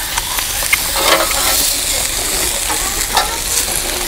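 A metal spatula scrapes across a griddle.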